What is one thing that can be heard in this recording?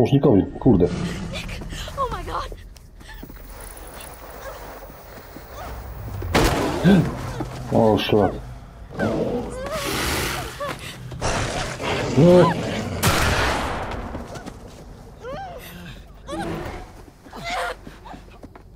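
A young woman screams and gasps in panic.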